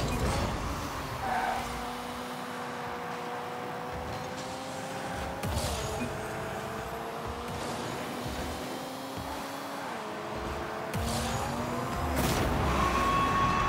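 A car engine hums steadily and changes pitch as the car speeds along.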